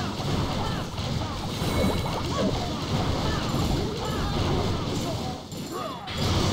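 Cartoonish battle sound effects clatter and bang steadily.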